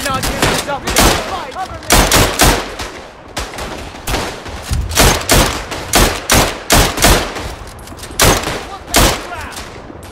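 Rapid rifle shots crack close by.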